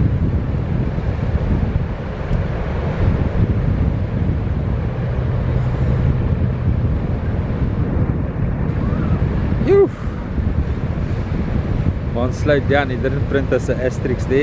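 Waves crash and roll steadily onto the shore outdoors.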